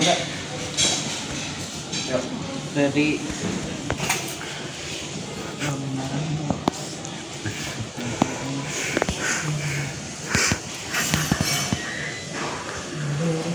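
Young men talk and call out nearby.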